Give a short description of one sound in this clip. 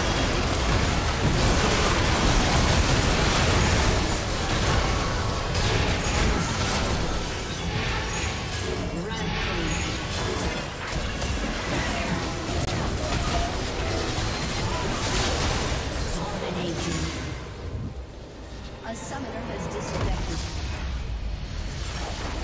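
Spell effects crackle, whoosh and explode in a game battle.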